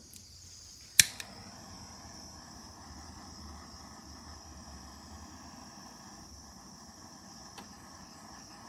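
A heat gun blows with a steady, airy whir.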